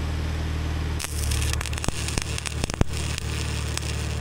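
An electric welder crackles and hisses.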